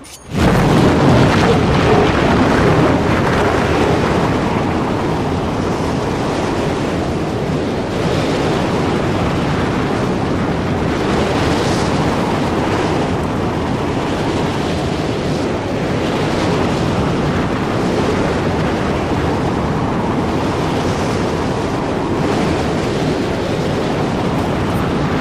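Strong wind roars and howls steadily outdoors.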